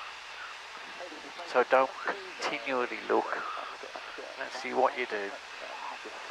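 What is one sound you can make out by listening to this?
A man speaks calmly over a headset intercom.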